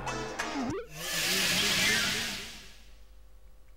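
A loud whooshing burst of electronic noise swells and fades.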